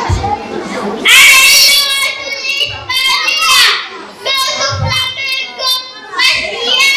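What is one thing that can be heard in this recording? A young boy speaks loudly and animatedly into a microphone through a loudspeaker.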